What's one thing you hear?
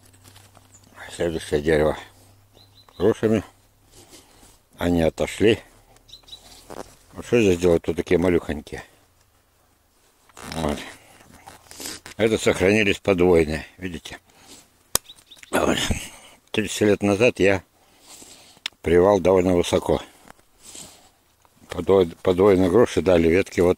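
A man speaks calmly close to the microphone, in short bursts with pauses.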